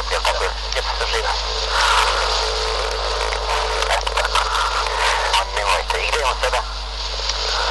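A man talks calmly over a crackly phone line.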